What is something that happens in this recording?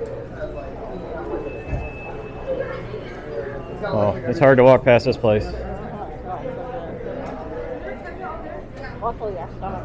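Shoppers murmur in the distance in a large hall.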